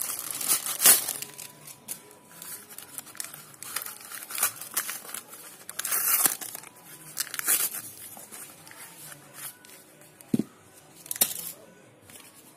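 Cardboard packaging rustles and tears as hands pull it open.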